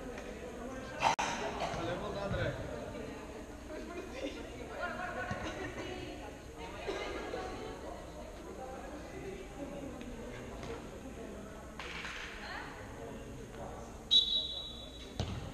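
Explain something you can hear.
Sneakers squeak and thud on a hard court in a large echoing hall.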